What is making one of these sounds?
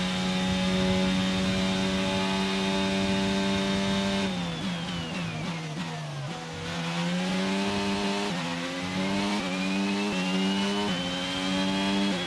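A racing car engine screams at high revs, drops in pitch while braking, then climbs again through quick gear shifts.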